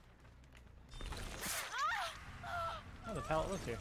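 A blade slashes and strikes with a sudden thud.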